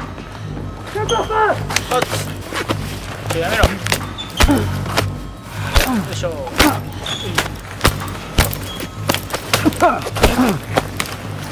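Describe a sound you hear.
Heavy punches thud in a close struggle.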